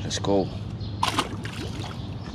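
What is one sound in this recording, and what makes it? A fish splashes into water.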